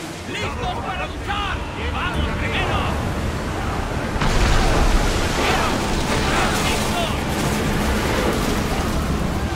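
Waves rush and splash against a wooden ship's hull.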